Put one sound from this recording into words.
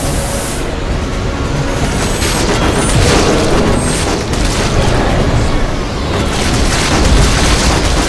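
A large robot stomps heavily and crashes about.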